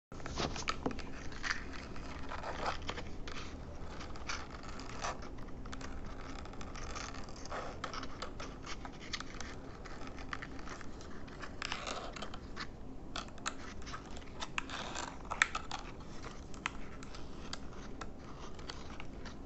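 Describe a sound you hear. Fingers tap and press on plastic, with soft clicks.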